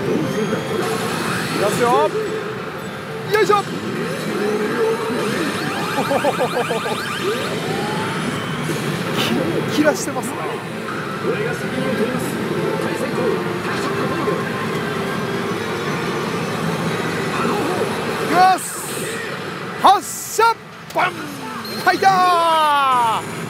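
A pachinko machine plays loud electronic music and sound effects.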